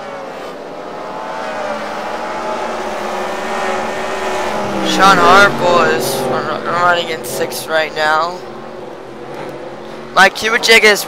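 Race car engines drone steadily at high speed.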